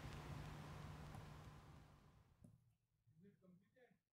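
A marker is set down on paper with a light tap.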